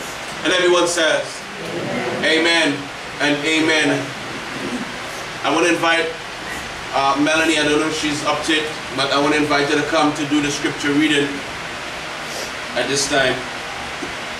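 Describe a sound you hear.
A man speaks calmly and clearly nearby.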